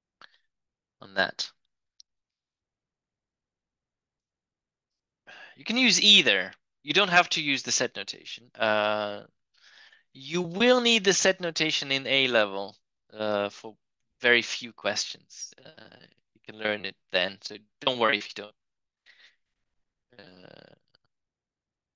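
A man explains calmly and clearly through a close microphone.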